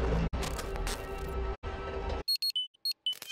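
Music plays loudly, then cuts off.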